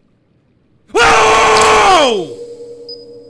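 A young man screams loudly into a close microphone.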